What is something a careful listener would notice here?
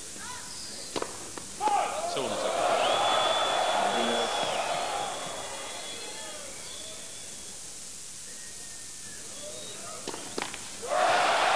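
A tennis ball is struck sharply with a racket several times.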